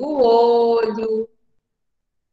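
A young woman speaks clearly into a close microphone, as in an online call.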